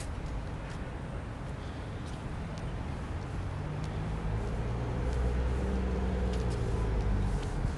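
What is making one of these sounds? Traffic hums in the distance on a quiet street.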